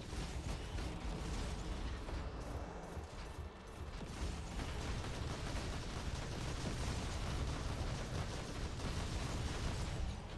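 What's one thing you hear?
A man talks into a microphone close by.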